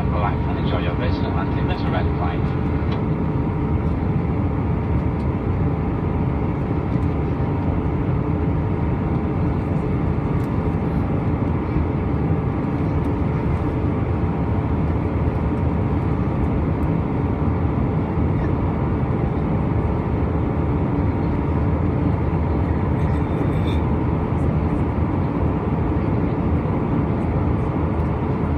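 A jet engine roars steadily from inside an airplane cabin.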